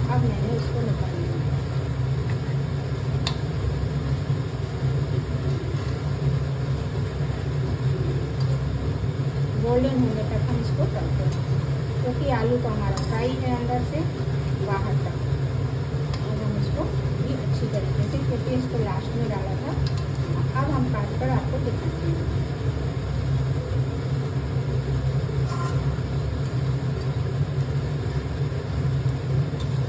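Oil sizzles steadily in a hot pan.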